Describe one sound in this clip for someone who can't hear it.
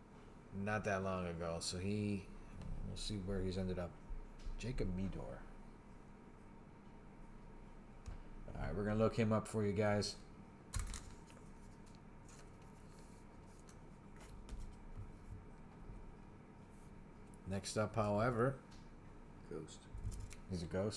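Trading cards rustle and slide against each other in hands.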